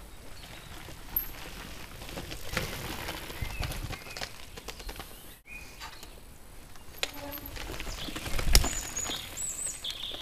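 Bicycle tyres crunch over a dirt trail.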